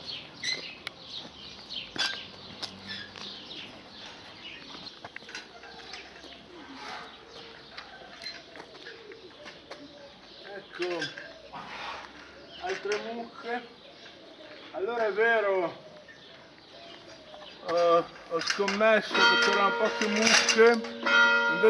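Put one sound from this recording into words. Cows munch hay.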